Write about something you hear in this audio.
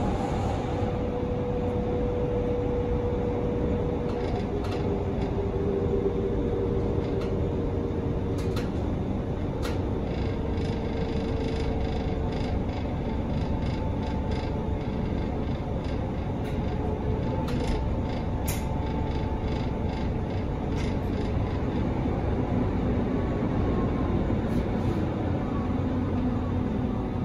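A train rumbles and hums steadily while moving along the tracks.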